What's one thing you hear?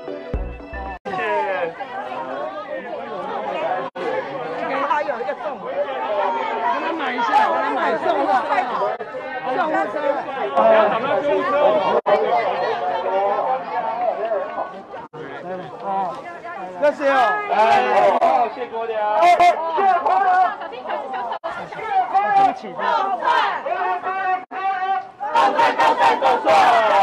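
A crowd of men and women talk and shout excitedly close by.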